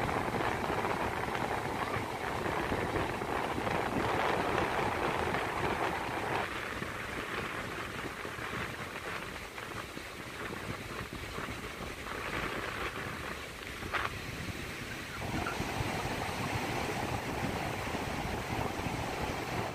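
Waves wash steadily onto a beach.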